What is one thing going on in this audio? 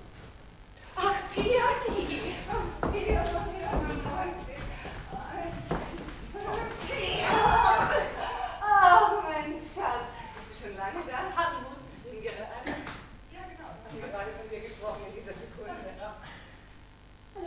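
A young woman shouts excitedly on a stage, heard from a distance in a hall.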